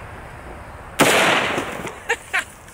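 A rifle shot cracks loudly outdoors.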